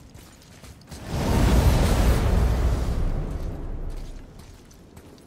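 A deep roaring whoosh swells suddenly and fades away.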